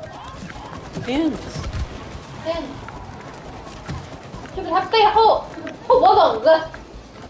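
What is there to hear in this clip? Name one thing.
A young woman talks and exclaims excitedly, close to a microphone.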